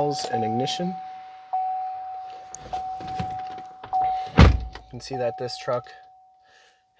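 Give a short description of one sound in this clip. A vehicle's warning chime beeps repeatedly.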